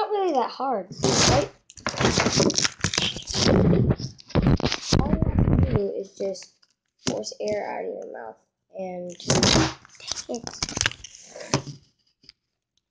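A phone rustles and bumps as it is handled.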